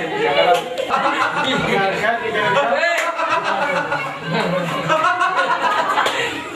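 Several men laugh loudly nearby.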